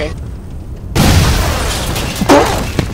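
A loud explosion booms nearby.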